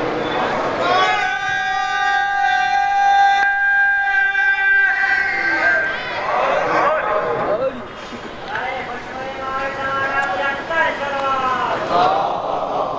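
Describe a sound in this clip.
A man chants in a long, drawn-out melodic voice through a microphone.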